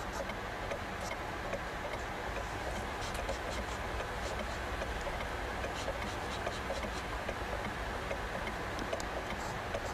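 A kettle hisses steadily as it steams.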